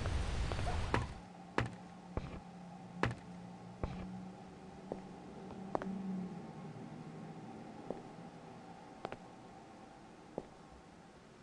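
Footsteps thud slowly across a hard floor.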